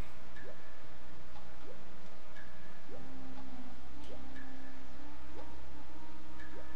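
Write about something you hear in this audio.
A short rising blip sounds about once a second.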